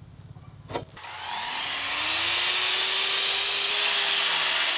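A circular saw whirs up to speed and runs loudly.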